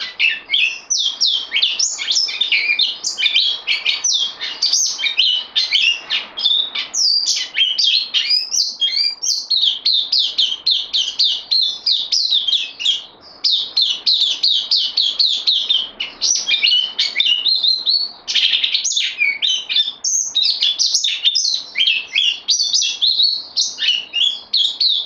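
A small songbird sings a fast, bright warbling song close by.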